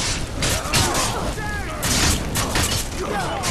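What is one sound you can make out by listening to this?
A fire blast bursts with a roar.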